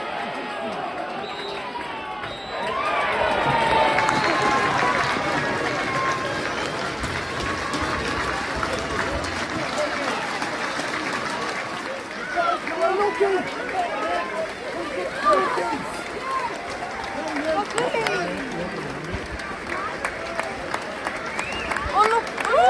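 Men close by call out and talk loudly with excitement.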